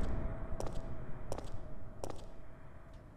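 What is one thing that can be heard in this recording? Slow footsteps climb stone stairs, each step a dull knock.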